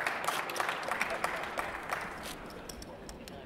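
Playing cards riffle and snap rapidly.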